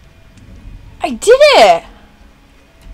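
A young woman gasps and exclaims loudly close to a microphone.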